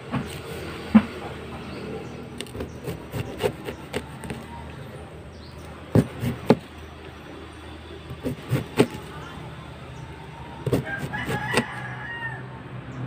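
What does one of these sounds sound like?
A knife chops through something firm on a board in sharp knocks.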